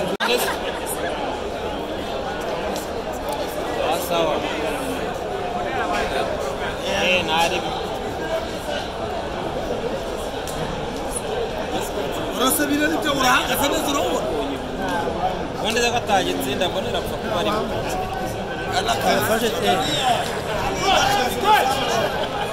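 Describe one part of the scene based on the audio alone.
A large crowd chatters and shouts nearby and across an open stadium.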